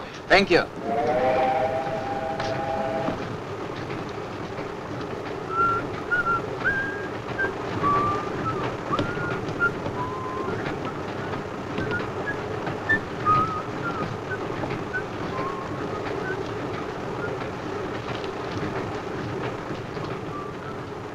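A train carriage rumbles steadily as it rolls along.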